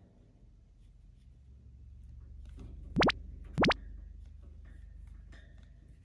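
A chinchilla rattles a wire cage while poking at it.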